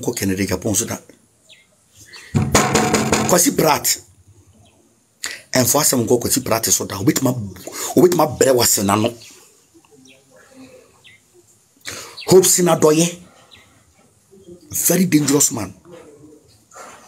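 A man speaks loudly and with animation into a close microphone, in bursts.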